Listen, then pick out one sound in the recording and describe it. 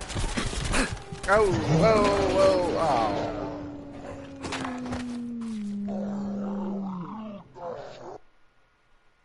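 A dog growls and barks angrily.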